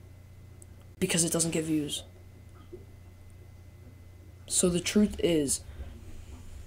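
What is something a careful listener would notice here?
A teenage boy speaks close to a microphone in short bursts.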